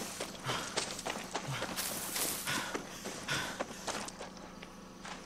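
Footsteps thud and rustle through tall grass.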